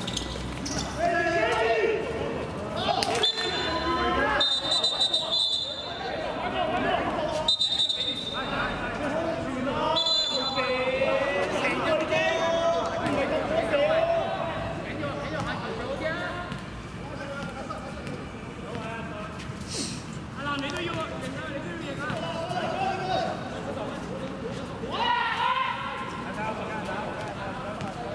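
Young men call out to each other.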